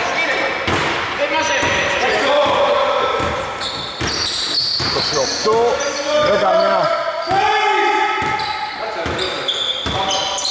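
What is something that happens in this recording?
Shoes squeak sharply on a hard court.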